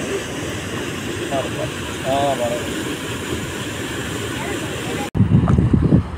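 Water rushes and roars from a dam spillway.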